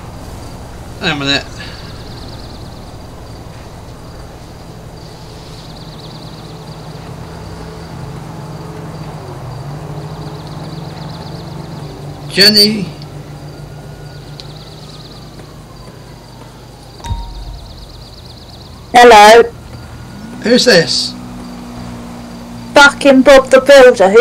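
A man speaks loudly into a close microphone in short bursts.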